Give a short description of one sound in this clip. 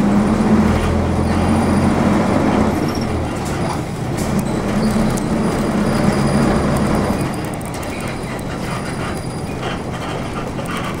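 A car engine hums steadily as the vehicle drives along a street.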